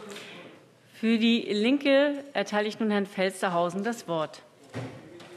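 A woman speaks calmly through a microphone.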